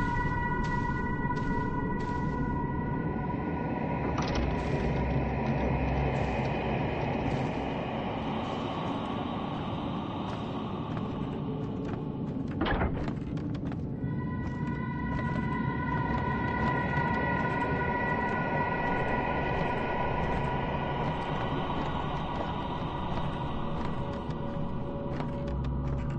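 Footsteps tread slowly on creaking wooden floorboards.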